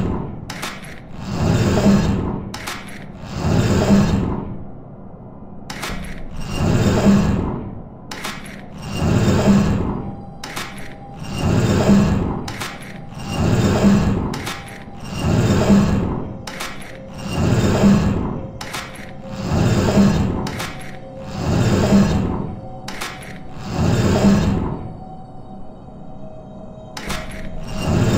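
A large machine pumps with a slow, steady rhythm of rising and falling whooshes.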